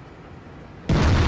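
A tank cannon fires with a loud bang.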